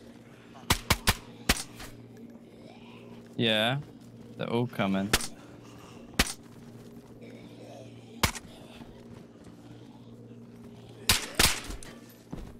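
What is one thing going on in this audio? Rifle shots crack out one at a time and in quick bursts.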